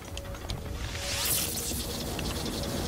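A metallic strike rings out with a bright crackle.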